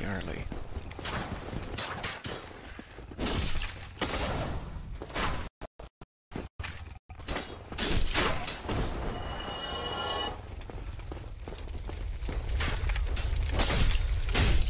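Metal weapons clash and strike.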